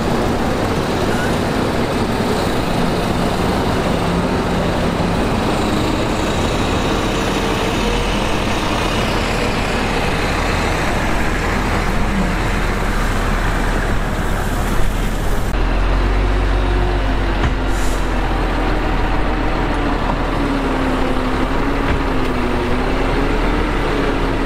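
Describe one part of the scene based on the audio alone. A bulldozer engine rumbles steadily in the distance.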